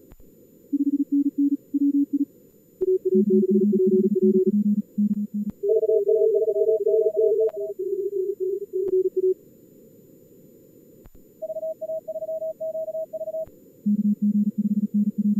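Morse code beeps at several different pitches, sometimes overlapping.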